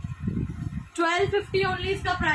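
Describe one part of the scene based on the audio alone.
A young woman speaks close by.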